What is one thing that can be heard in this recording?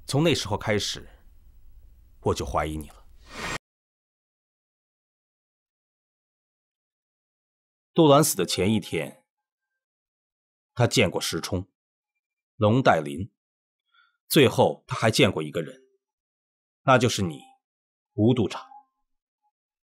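A man speaks calmly and accusingly, close by.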